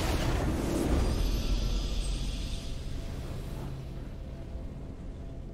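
A triumphant fanfare swells and slowly fades.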